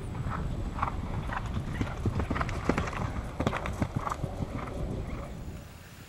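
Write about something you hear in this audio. A horse's hooves thud on grass as it gallops past close by.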